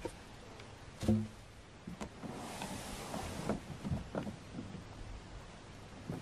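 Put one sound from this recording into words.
A plastic canoe hull knocks and thumps as it is turned over on the grass.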